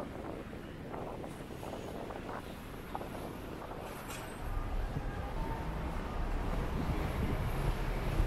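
Footsteps of passers-by fall on a stone pavement.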